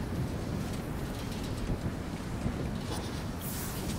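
Large wings flap and whoosh.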